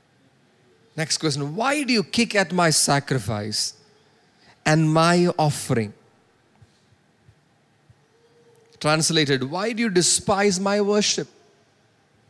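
A man speaks with emphasis into a microphone, in short bursts with pauses.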